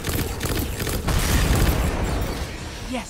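A gun fires a rapid burst of loud shots.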